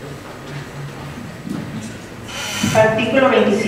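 A microphone thumps as a woman adjusts it.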